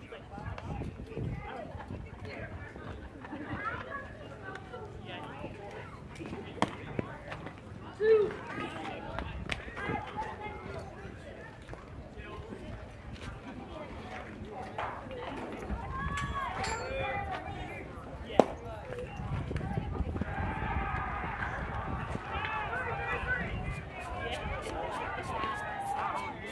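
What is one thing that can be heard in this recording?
Young players call out across an open field.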